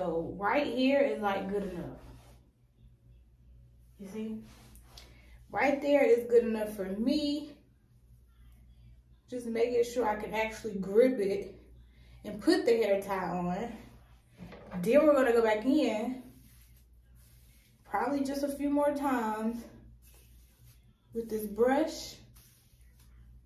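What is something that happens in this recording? A young woman talks calmly and close by, in short phrases with pauses.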